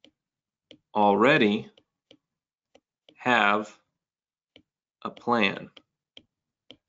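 A man speaks slowly and thoughtfully, close to a microphone, in short phrases with pauses.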